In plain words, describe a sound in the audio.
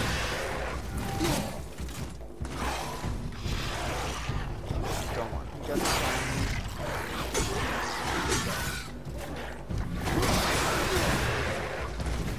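Heavy weapon blows thud and clash in a fight.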